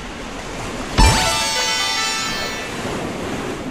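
A bright video game jingle chimes.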